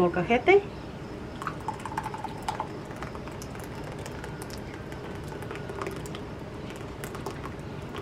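A thick sauce pours from a jug.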